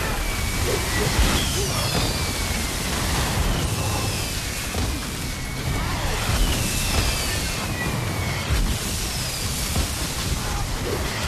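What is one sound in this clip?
Magic spells crackle and burst in a fierce battle.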